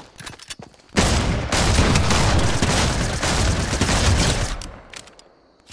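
Rapid gunshots crack out close by.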